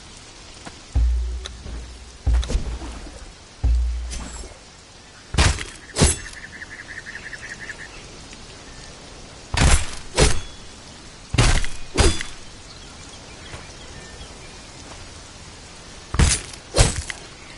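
A blade slices and thuds into a carcass again and again.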